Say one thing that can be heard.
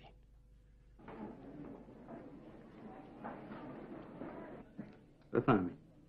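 A crowd murmurs.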